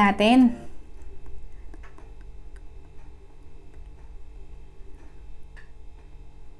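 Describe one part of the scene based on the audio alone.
A woman chews food softly with faint smacking sounds close to the microphone.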